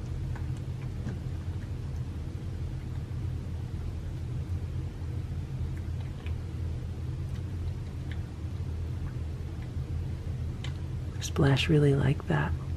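A cat licks and chews food quietly.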